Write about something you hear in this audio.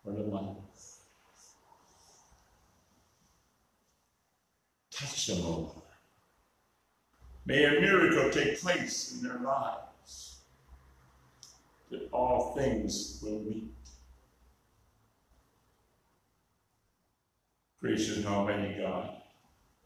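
An elderly man speaks slowly and calmly into a microphone, with long pauses, in a room with a slight echo.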